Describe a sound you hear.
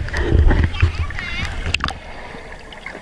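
Water churns and bubbles underwater.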